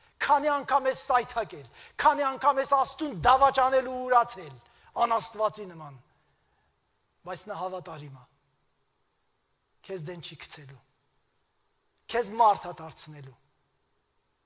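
A middle-aged man preaches with animation through a microphone, pausing between phrases.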